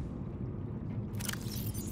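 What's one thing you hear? A handheld device opens with a soft electronic whoosh.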